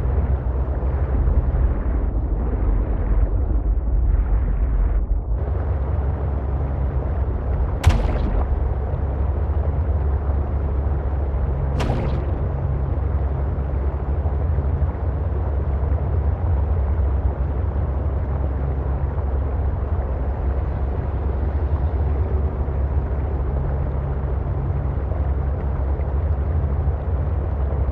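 Water rushes and bubbles around a moving submarine.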